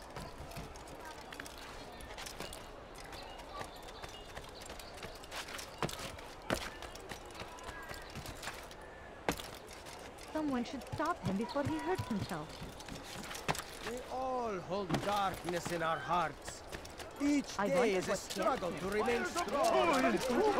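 Quick footsteps thud and patter on wood and stone.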